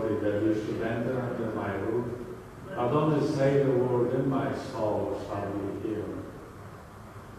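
A man chants slowly through a microphone in a large echoing hall.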